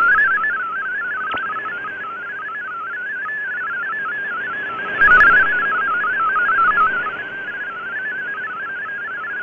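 A shortwave radio plays a fast warbling data tone.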